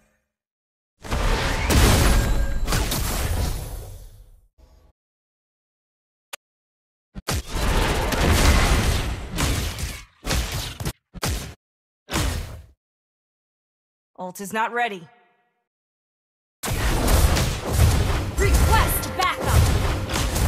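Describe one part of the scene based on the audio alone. Magic blasts and impacts crash in loud bursts during a fight.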